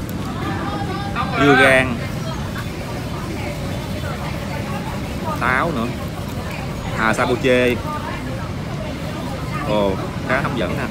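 A plastic spoon scrapes through shaved ice in a bowl.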